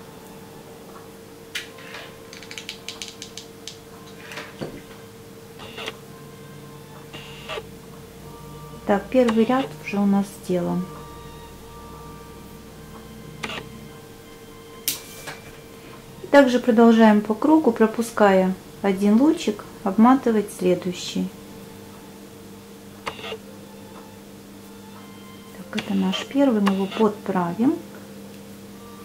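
Thin wooden sticks click and rustle softly as they are handled.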